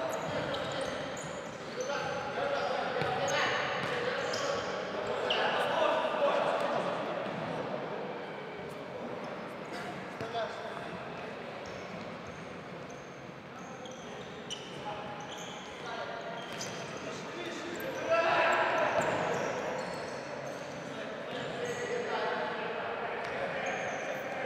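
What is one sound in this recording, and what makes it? A ball thumps as players kick it in a large echoing hall.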